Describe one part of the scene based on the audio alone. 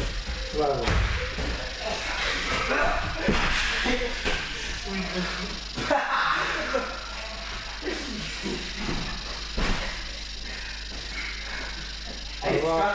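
Young men talk casually in an echoing hall.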